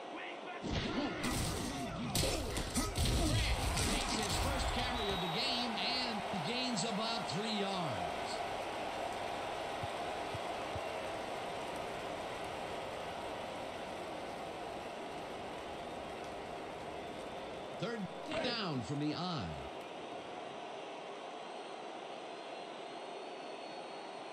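A crowd cheers and roars in a large stadium.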